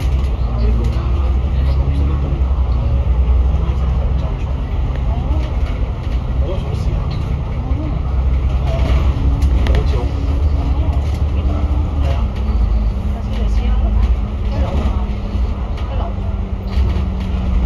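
A bus engine rumbles steadily while driving along.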